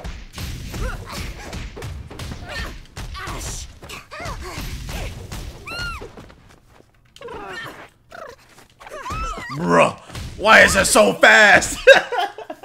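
Punches and blasts crack rapidly in a fighting game.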